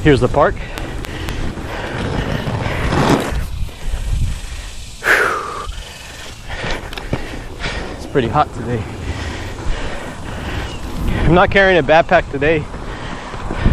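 A man talks with animation close to a microphone, outdoors.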